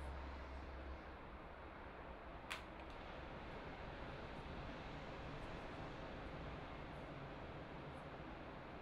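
Wind blows steadily outdoors, rustling leaves.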